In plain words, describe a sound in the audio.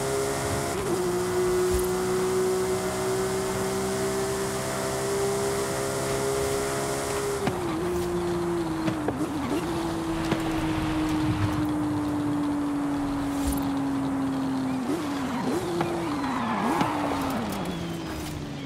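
A sports car engine roars at high speed, holding a steady high pitch, then drops with each gear change as the car slows.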